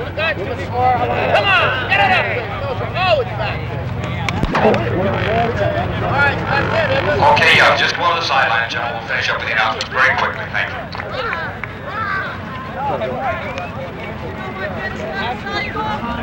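A marching band plays brass music outdoors.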